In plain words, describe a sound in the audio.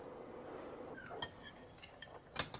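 Objects clink and knock on a table.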